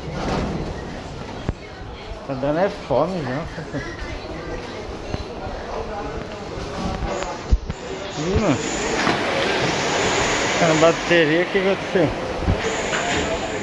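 A crowd murmurs and chatters in an echoing indoor hall.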